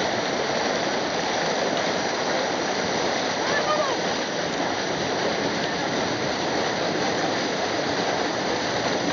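White water rushes and churns loudly over rocks close by.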